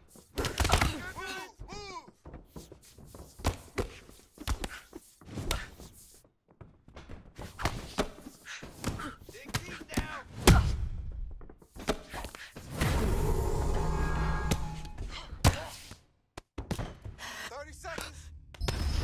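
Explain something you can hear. Punches and kicks land with dull thuds.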